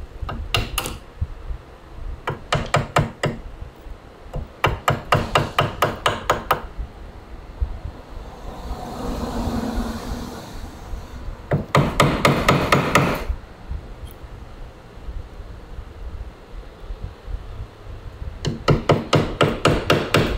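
A blade shaves thin slices from wood.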